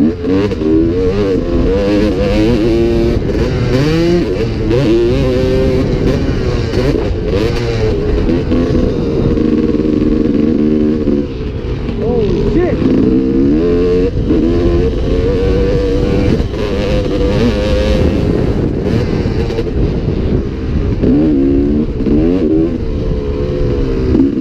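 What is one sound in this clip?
A motorcycle engine revs loudly, rising and falling in pitch as it changes gear.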